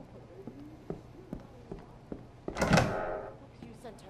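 A door swings open.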